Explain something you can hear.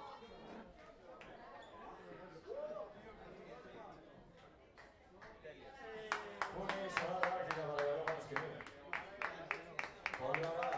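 A crowd murmurs and chatters in a room.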